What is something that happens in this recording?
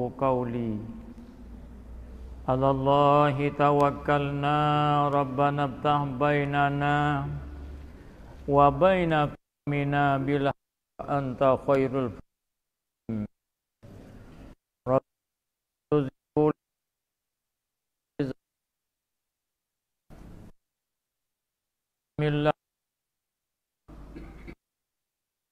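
An elderly man speaks slowly and steadily into a microphone, with a slight echo.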